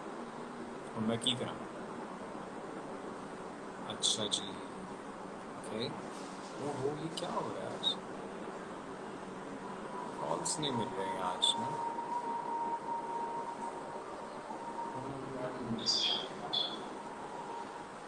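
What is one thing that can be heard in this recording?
A man speaks calmly and close to a phone's microphone, in short bursts with pauses.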